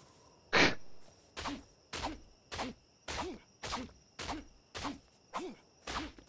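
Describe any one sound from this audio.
Repeated dull chopping thuds strike a carcass at a steady pace.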